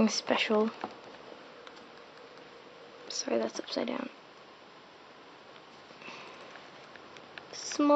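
Fabric rustles softly as clothes are handled.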